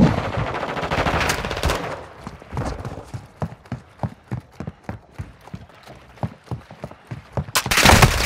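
Footsteps thud quickly on a wooden floor.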